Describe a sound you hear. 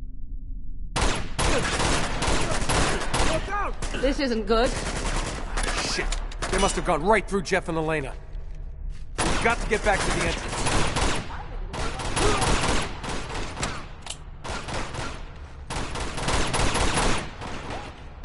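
Pistol shots ring out in rapid bursts.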